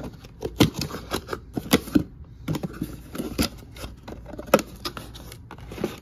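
Cardboard flaps rustle as a box is opened.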